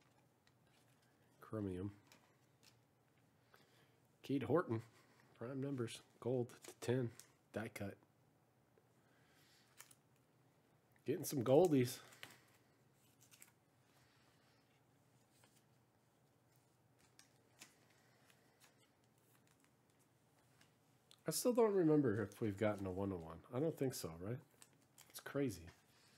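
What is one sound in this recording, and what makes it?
Hands shuffle and slide trading cards.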